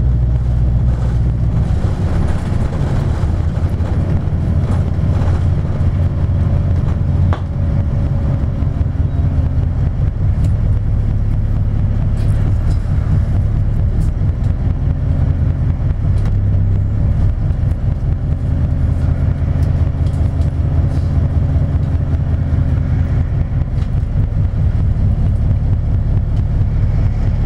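Cars pass by on the road.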